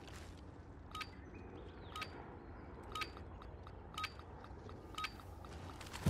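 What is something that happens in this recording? A countdown timer beeps once each second.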